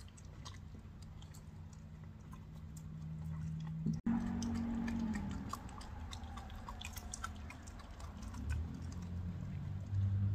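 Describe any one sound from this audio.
A coyote chews and gnaws wet meat with clicking, crunching bites.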